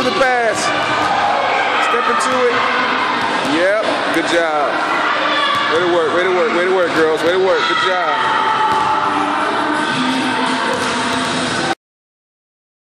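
Young children shout and squeal excitedly in an echoing hall.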